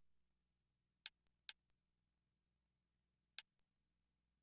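Short, sharp menu clicks sound a few times.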